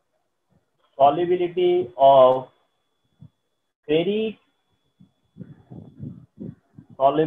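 A man speaks clearly into a close microphone, explaining.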